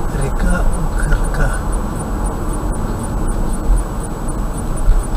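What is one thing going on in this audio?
A car drives steadily along a highway, with a low road and engine rumble.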